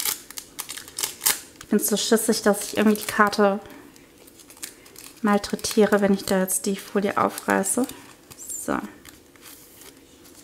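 A plastic wrapper crinkles and rustles between fingers.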